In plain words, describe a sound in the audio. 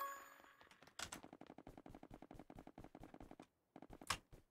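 Blocks are placed with quick, soft repeated taps.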